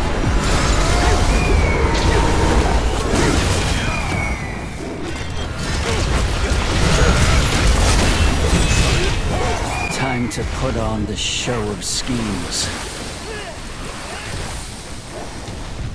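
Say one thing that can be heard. Magic blasts boom and crackle in quick succession.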